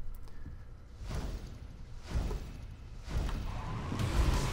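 A car engine revs and roars in bursts.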